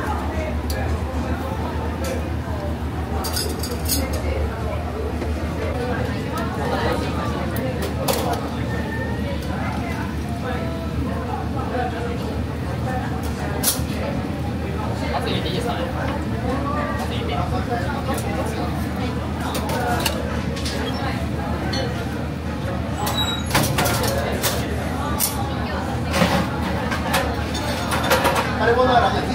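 Food sizzles in hot pans.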